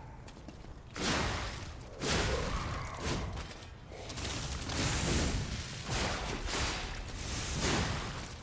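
Swords clash and slash in a loud fight.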